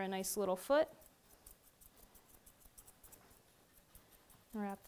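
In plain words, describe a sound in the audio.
Scissors snip through fur.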